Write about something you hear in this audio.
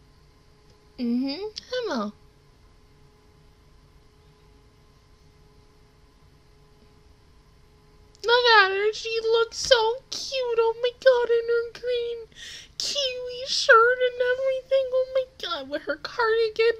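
A young woman sings close to a microphone.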